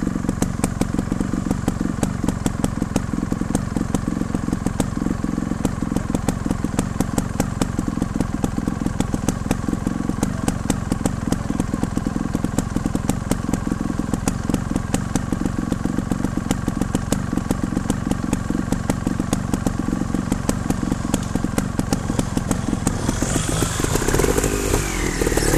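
A motorcycle engine chugs steadily close by.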